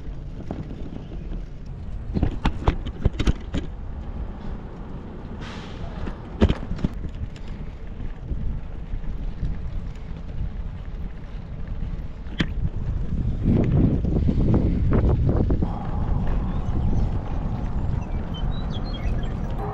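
Bicycle tyres roll over rough pavement.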